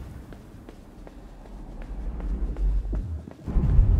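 Light footsteps run across a hard floor.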